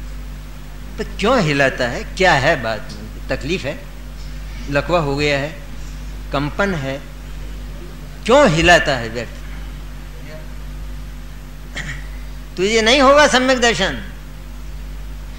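An elderly man speaks slowly and calmly into a microphone, with pauses between phrases.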